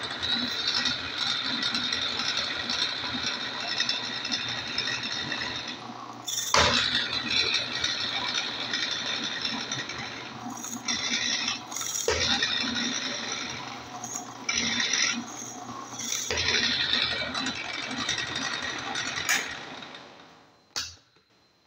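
A drill press whirs loudly as its bit bores into wood.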